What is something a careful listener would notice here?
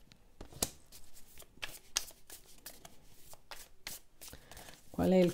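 Playing cards riffle and snap as a deck is shuffled by hand.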